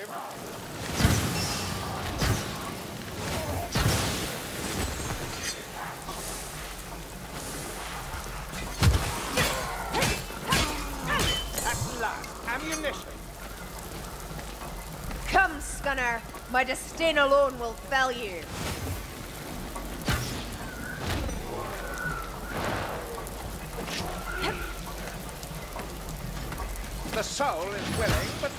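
A bowstring twangs as arrows are loosed again and again.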